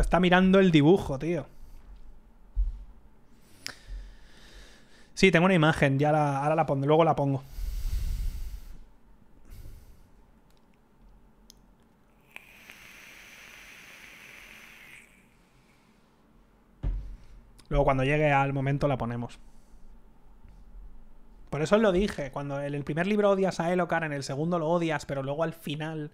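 A man talks into a close microphone with animation, in bursts with pauses.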